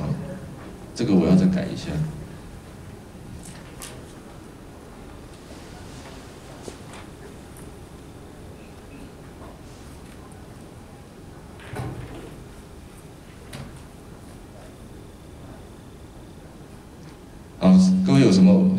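A man speaks into a microphone through loudspeakers in a large echoing hall, in short bursts with long pauses.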